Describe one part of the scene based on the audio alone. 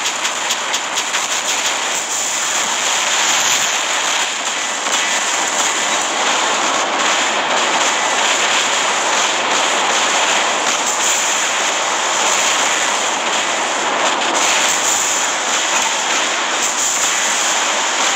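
A loud mechanical hum drones throughout.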